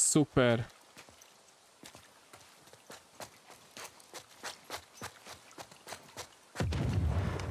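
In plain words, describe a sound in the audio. Footsteps climb stone stairs.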